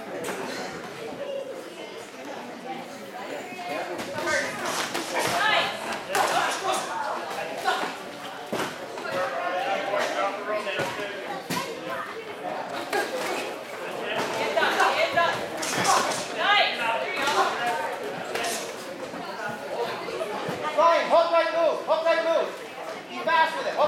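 Spectators shout and cheer from ringside, echoing in a hall.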